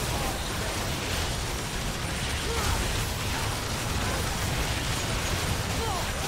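Game spell effects and attacks clash and whoosh.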